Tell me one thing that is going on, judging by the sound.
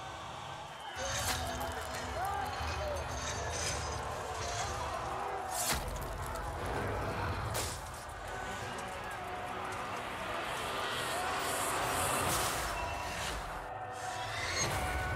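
Metal armour clanks as armoured figures lunge and grapple.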